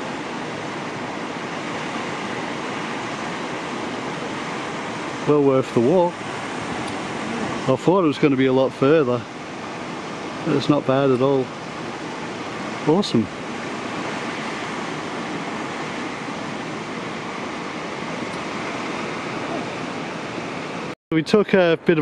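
A waterfall roars steadily into a pool of water.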